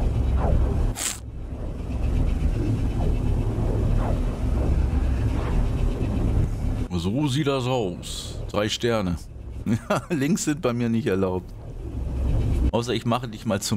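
A deep, rushing roar rumbles steadily.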